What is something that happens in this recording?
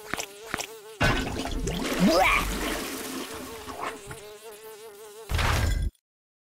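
A toilet flushes with rushing, gurgling water.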